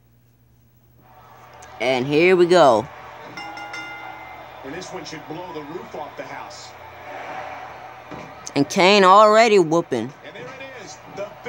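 A crowd cheers and chants through a television speaker.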